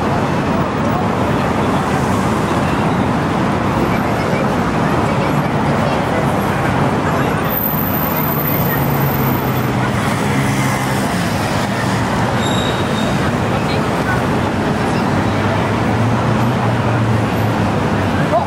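A crowd of people chatters in the distance.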